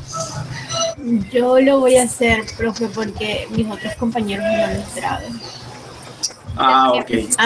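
A young person speaks over an online call.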